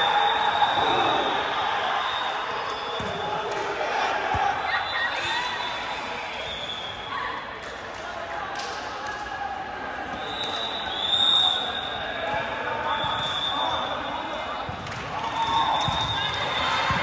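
Young women call out to each other in a large echoing hall.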